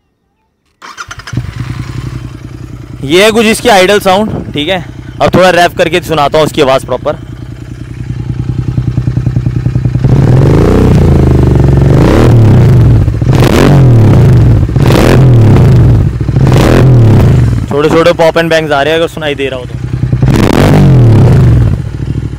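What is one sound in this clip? A motorcycle engine starts and idles with a deep, throbbing rumble.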